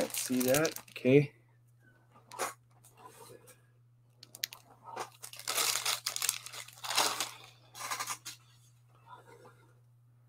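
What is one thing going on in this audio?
A plastic comic sleeve crinkles as it is handled.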